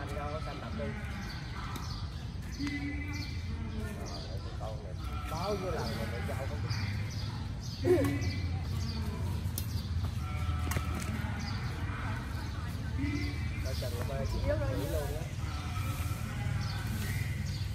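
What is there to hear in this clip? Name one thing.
Young women and men chatter and call out nearby.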